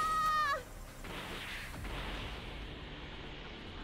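A fast whoosh rushes past.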